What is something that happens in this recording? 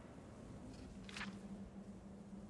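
A page of a book turns with a soft rustle.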